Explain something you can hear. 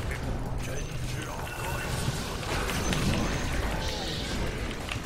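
Magic spell effects whoosh and crackle in a video game.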